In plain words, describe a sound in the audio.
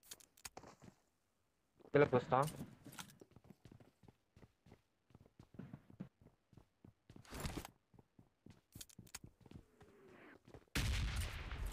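Footsteps thud up wooden stairs.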